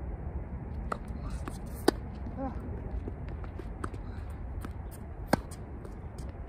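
Tennis balls are struck with sharp pops from rackets, near and far.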